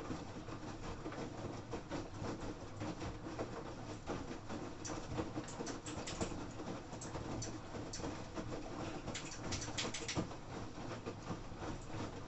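Laundry tumbles and sloshes inside a washing machine, with soft thuds.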